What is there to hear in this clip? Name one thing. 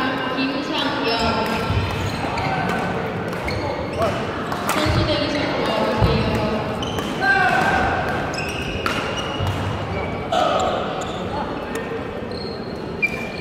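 Voices of a crowd echo in a large hall.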